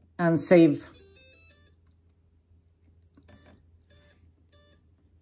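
An electronic radio controller beeps with short high tones.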